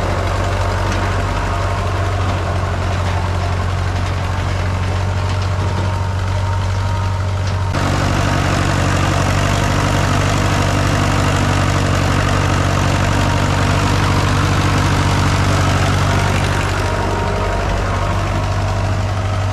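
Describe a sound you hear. Tyres crunch slowly over a dirt track.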